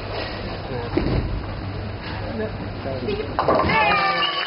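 A bowling ball thuds onto the lane and rolls.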